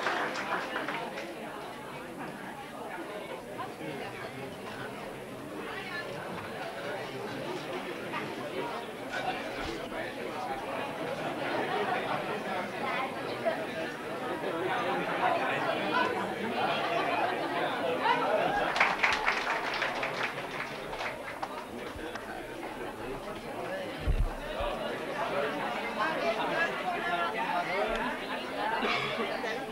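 A large crowd chatters and murmurs in an echoing hall.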